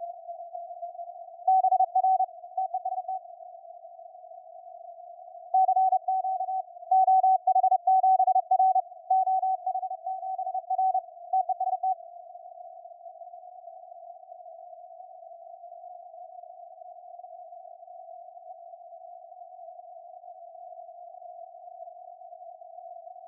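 Steady radio static hisses from a receiver.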